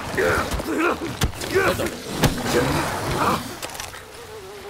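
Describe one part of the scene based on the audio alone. A crocodile roars and hisses as it attacks.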